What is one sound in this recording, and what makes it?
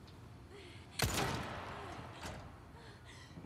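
A pistol shot rings out with a short echo.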